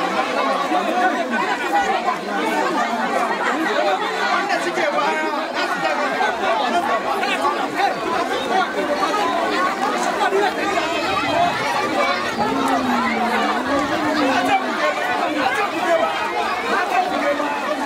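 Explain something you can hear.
A large crowd of men and women talk and call out all at once, close by, outdoors.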